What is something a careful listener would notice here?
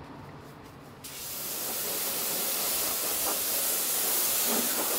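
A pressure washer sprays water with a loud, steady hiss.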